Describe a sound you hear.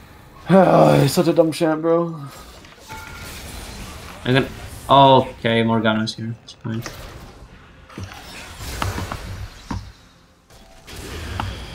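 Video game spell effects whoosh and crackle during a fight.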